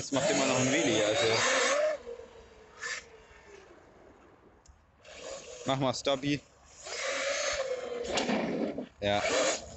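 A small electric motor whines loudly, rising and falling in pitch as a toy car speeds close by and then away.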